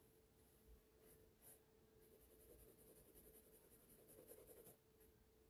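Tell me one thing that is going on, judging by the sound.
A pencil scratches softly across paper in quick strokes.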